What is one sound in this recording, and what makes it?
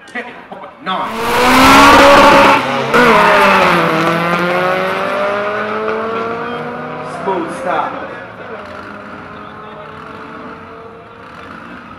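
Race car engines roar loudly as cars launch down a drag strip, then fade into the distance.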